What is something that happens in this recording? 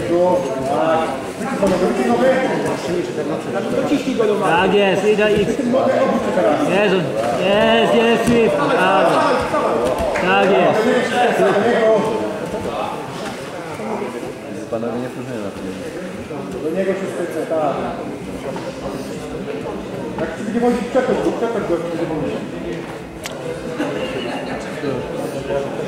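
Several men shout loudly and excitedly in an echoing hall.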